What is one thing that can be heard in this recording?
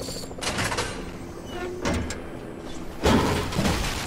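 A chest creaks open with a bright chime.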